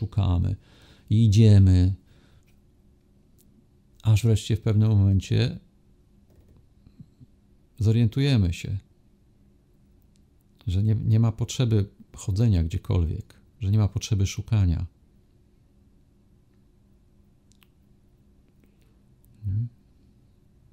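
A middle-aged man speaks calmly and close to a microphone, in bursts with long pauses.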